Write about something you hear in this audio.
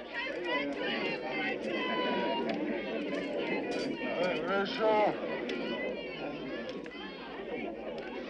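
A crowd of men and women shouts and clamours excitedly nearby.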